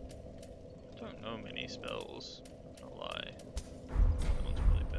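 Metal swords clash and ring.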